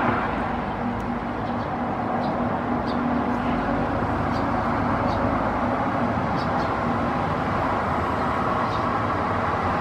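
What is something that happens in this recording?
A small bird chirps softly in short high notes.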